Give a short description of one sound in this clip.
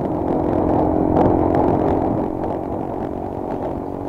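An auto-rickshaw engine putters close by as it is passed.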